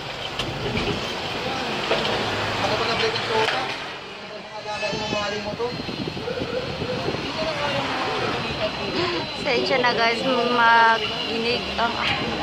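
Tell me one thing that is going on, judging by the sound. A cordless drill whirs as it drives into plastic.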